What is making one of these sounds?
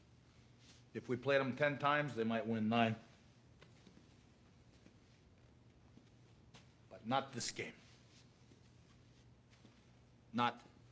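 A man speaks firmly and loudly, with short pauses.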